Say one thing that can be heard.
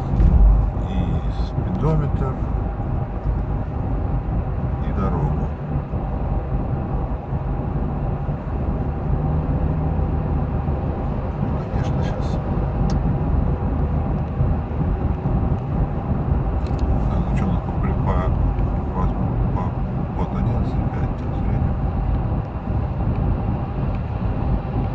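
Tyres rumble on the road.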